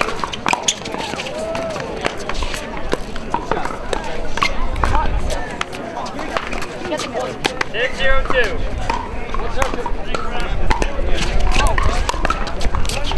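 A crowd of people chatters in the background outdoors.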